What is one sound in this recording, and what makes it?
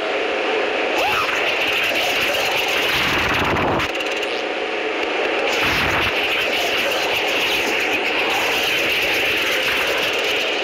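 A spinning whirlwind whooshes and crackles with electric sparks.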